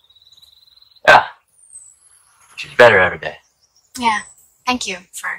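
A young woman answers briefly.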